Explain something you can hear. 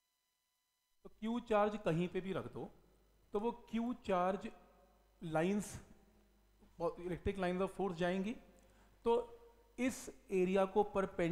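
A man speaks steadily through a close microphone, explaining.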